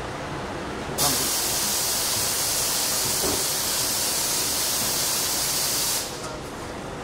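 A bus door opens with a loud hiss of air.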